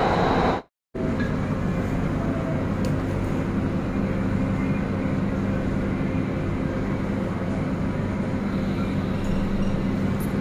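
A train hums and rumbles steadily as it rides.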